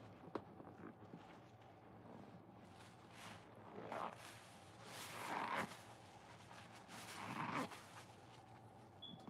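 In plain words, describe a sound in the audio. Hands squeeze a soapy sponge with wet squelching and crackling foam.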